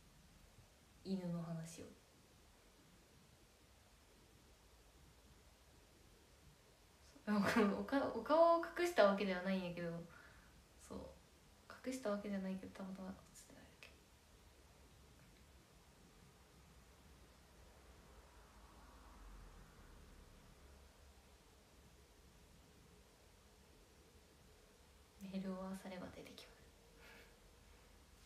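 A young woman speaks softly and close to a microphone, in short bursts with long pauses.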